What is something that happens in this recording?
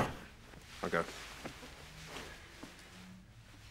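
A man speaks quietly and seriously nearby.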